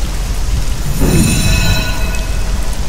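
A bright, shimmering chime rings out and lingers.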